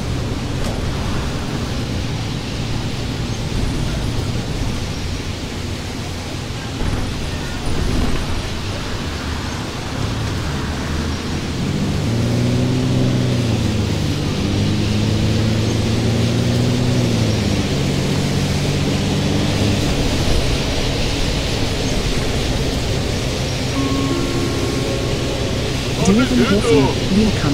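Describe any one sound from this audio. A bus engine drones steadily, its pitch rising and falling as it speeds up and slows down.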